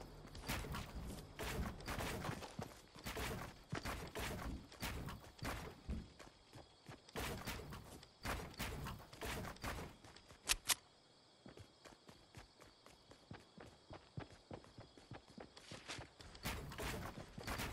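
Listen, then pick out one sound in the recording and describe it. Building pieces clunk into place in a video game.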